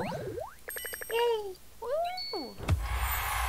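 A bright chime rings as a reward pops up.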